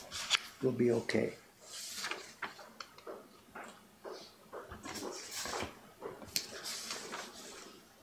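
Paper rustles and slides as hands handle printed sheets.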